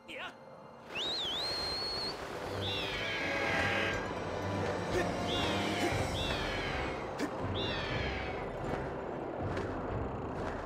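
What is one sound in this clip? Wind rushes steadily.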